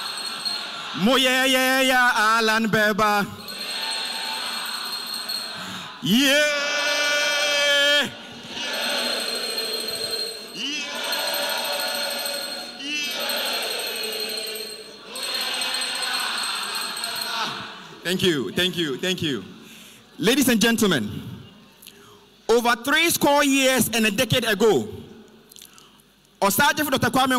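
A man shouts energetically through a loudspeaker in a large echoing hall.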